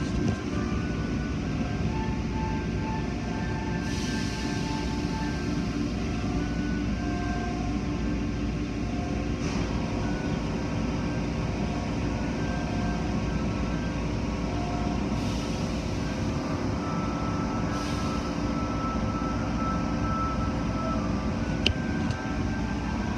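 Water sprays and splashes steadily over a car.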